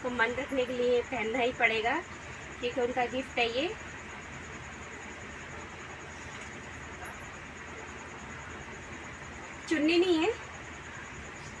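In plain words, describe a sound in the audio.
Cloth rustles as a woman unfolds garments.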